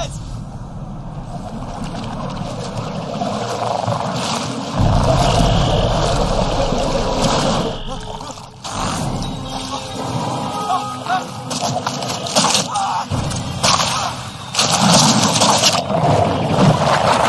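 Water churns and splashes loudly.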